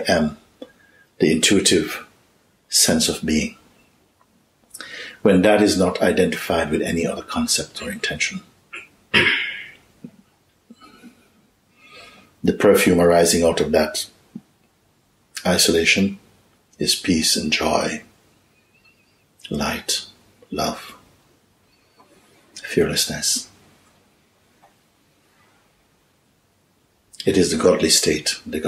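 An older man speaks calmly and slowly in short phrases, close by.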